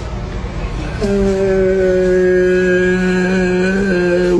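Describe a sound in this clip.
A man sings a long, drawn-out note loudly, close by.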